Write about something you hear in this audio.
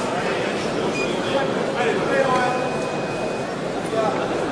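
Shoes squeak sharply on the floor.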